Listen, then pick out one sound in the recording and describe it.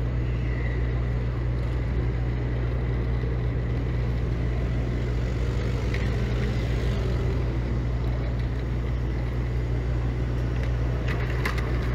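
City traffic rumbles steadily on a busy street.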